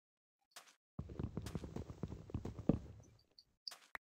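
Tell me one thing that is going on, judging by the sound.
Wooden blocks are hit with an axe in quick, soft repeated knocks.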